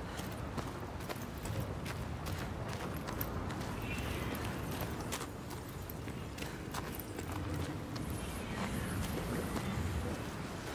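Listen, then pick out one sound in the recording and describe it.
Footsteps crunch on gravel and stones.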